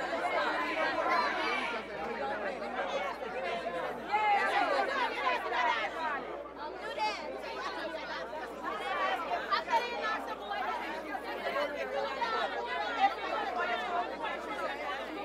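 A young woman talks into a microphone, heard over loudspeakers outdoors.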